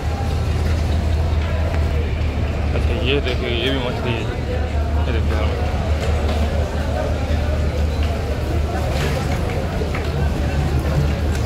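Men talk and call out all around in a busy open-air crowd.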